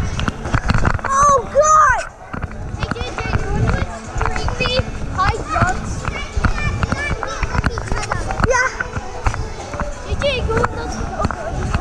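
Children shout and squeal in a large echoing hall.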